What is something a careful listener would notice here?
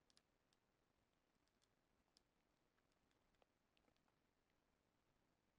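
Soft game interface clicks and pops sound now and then.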